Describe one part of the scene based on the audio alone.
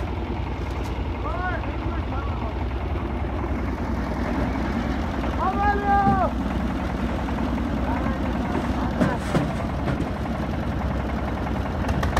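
A wheelbarrow rattles as it is pushed over rough ground.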